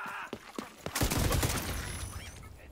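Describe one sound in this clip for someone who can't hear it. An explosion booms nearby.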